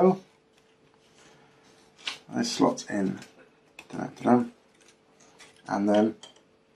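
Light wooden parts click and rustle softly as they are handled.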